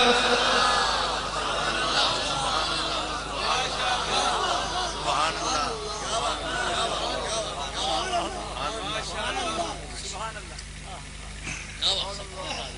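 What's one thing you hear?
A man speaks forcefully through a microphone and loudspeakers in an echoing space.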